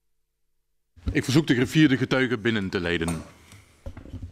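A man speaks into a microphone in a large room.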